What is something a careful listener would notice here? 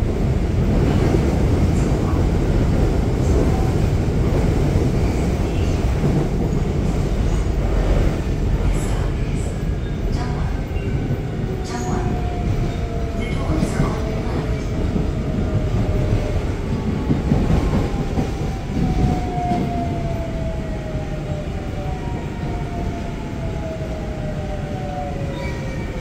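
A subway train rumbles along the track.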